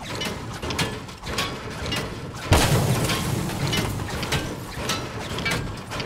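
A pickaxe clanks repeatedly against a car's metal body.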